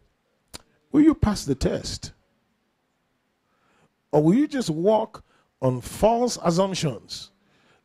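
A man speaks with animation into a microphone, in bursts separated by pauses.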